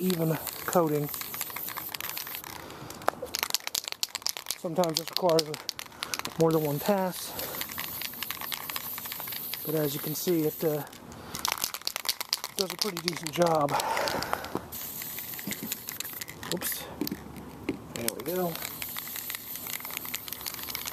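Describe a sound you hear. A spray can hisses in short bursts close by.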